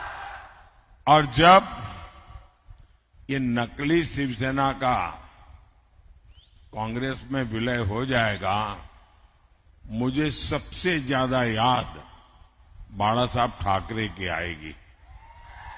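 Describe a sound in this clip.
An elderly man speaks forcefully through a microphone and loudspeakers.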